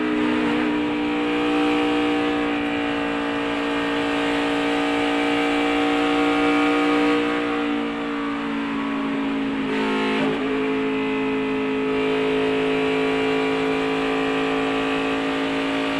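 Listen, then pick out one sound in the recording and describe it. Wind rushes past a fast-moving car.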